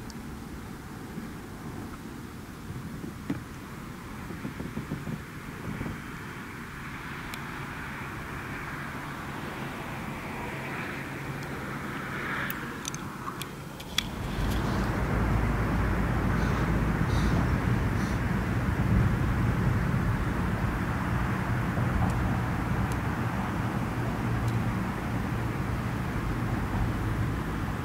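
Water laps gently against the side of a kayak.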